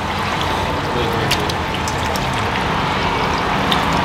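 Pieces of meat drop into liquid with soft splashes.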